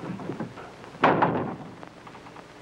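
A hand knocks on a wooden door.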